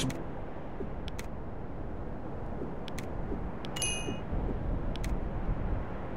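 Short clicks sound from a game's interface as buttons are pressed.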